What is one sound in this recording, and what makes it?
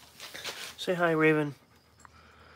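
A puppy lets out a short, high whine.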